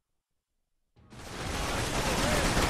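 Glass shatters and debris scatters.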